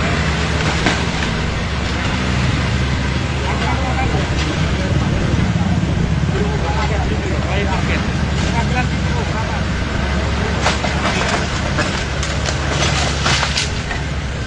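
Concrete and bricks crash and clatter as an excavator tears down a wall.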